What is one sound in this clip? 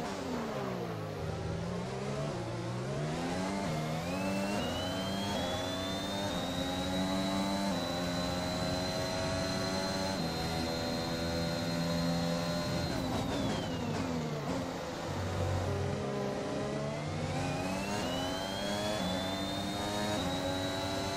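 A V6 turbo hybrid Formula One car accelerates hard through the gears.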